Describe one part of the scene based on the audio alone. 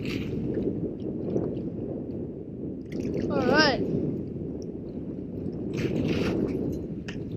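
Small waves lap against a boat.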